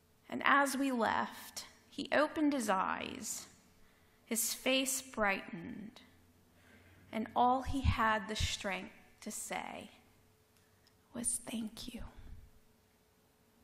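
A woman speaks calmly through a headset microphone in a large, echoing hall.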